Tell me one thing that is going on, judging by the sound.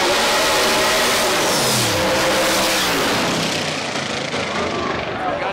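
A race car engine roars loudly as it speeds past, its pitch dropping as it goes.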